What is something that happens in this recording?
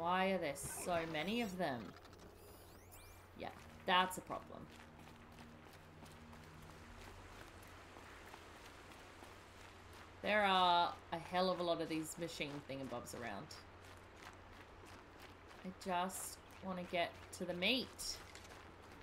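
A woman talks with animation into a close microphone.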